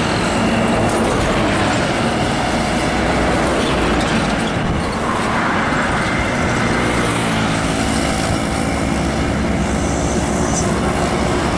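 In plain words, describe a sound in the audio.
Motorcycle engines buzz past.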